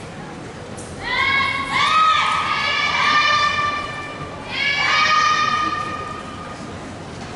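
Young women shout sharp, drawn-out cries in a large echoing hall.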